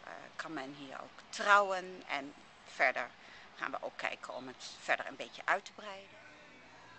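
A middle-aged woman speaks close up, calmly.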